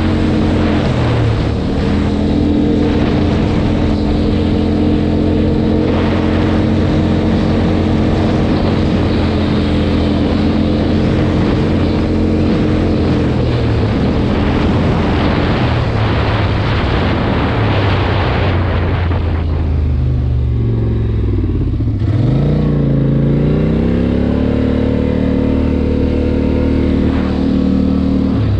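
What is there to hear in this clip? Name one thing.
A quad bike engine drones and revs up and down.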